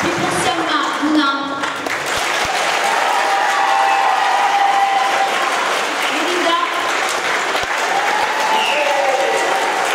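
A large choir of young voices sings together, echoing in a hall.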